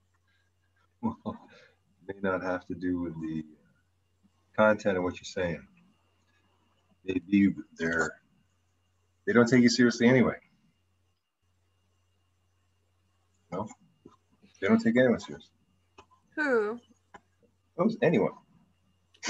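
An older man talks calmly over an online call.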